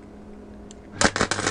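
An electric welder crackles and buzzes.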